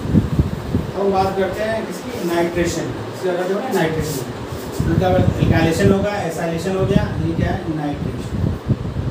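A man speaks calmly into a nearby microphone, as if explaining.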